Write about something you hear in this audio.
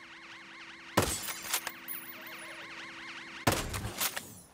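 A rifle fires two loud shots.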